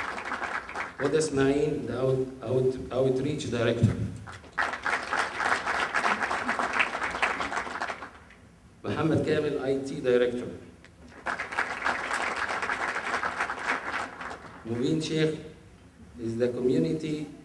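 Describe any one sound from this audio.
An elderly man speaks calmly into a microphone, heard through a loudspeaker in a large room.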